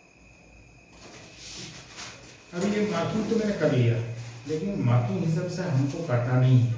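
Paper rustles and crinkles as it is lifted and folded.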